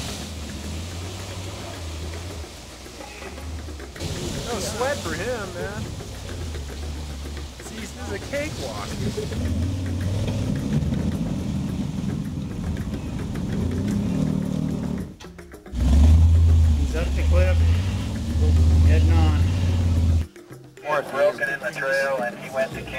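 An off-road vehicle's engine rumbles and revs as it climbs.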